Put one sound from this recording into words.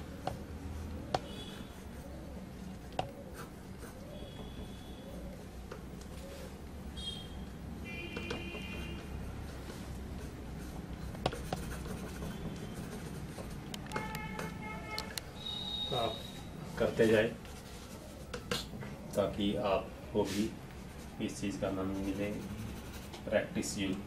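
A marker scratches and squeaks across paper.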